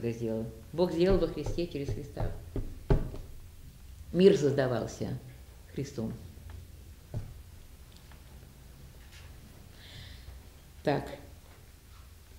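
An elderly woman speaks calmly and close by, with pauses.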